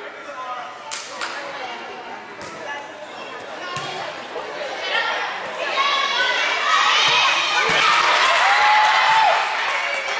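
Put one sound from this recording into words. A volleyball is struck with a sharp slap.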